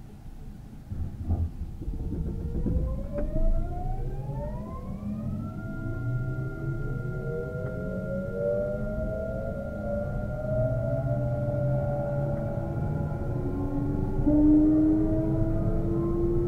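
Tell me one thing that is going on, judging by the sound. An electric train's motors hum and whine, rising in pitch as the train starts off.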